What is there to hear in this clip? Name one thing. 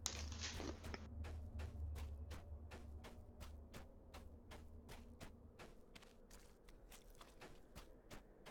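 Footsteps run quickly and steadily over grass.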